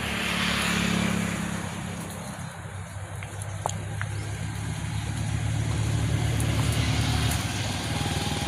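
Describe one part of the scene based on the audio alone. Goats browse through leafy undergrowth, rustling and tearing the plants.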